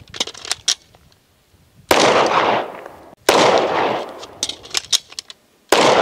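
Metal parts of a pistol click and rattle.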